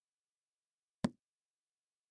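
A book snaps shut.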